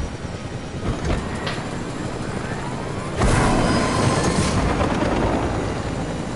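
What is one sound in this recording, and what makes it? Wind rushes steadily past as a glider flies.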